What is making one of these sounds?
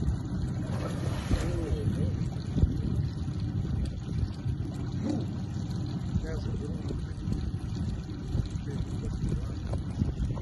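Wind rumbles across open water.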